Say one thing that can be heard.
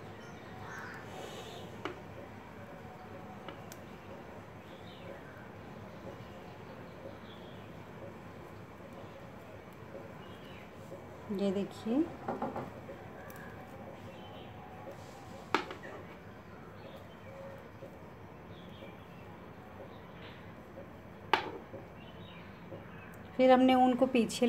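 A crochet hook clicks softly against yarn.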